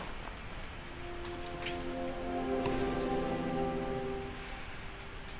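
A short bright chime of notes rings out.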